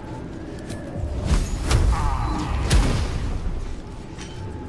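Fiery spell blasts burst with a loud roar.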